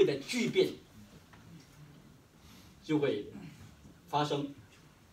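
A middle-aged man speaks calmly into a microphone in a slightly echoing room, pausing between phrases.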